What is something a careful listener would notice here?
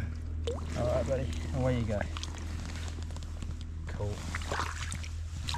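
Water splashes softly.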